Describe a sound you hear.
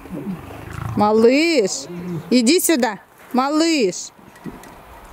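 A lion cub gives loud, wavering cries close by.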